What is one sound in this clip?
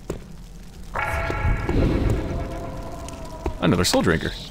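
A magic spell is cast with a ringing whoosh.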